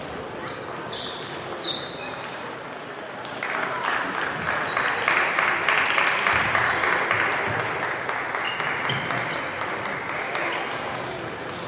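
Table tennis balls click against paddles and tables in a large echoing hall.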